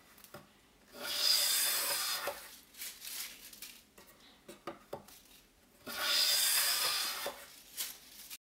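A hand plane shaves wood with a rasping hiss.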